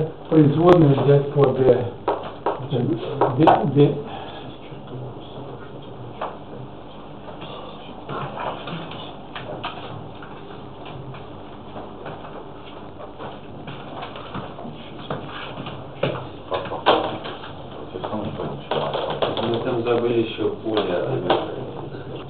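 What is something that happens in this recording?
A man lectures in a calm voice, heard from across a room.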